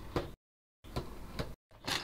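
A knife slices through cardboard tape.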